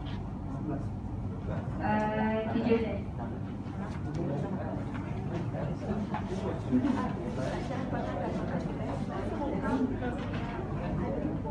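A young woman speaks calmly into a microphone in a room with some echo.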